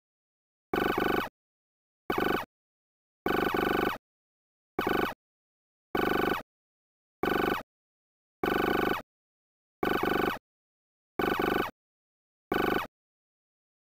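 Short bursts of electronic chatter sound as text is printed out.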